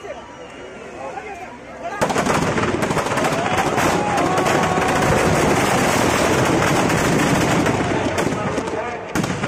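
A crowd cheers and shouts at a distance.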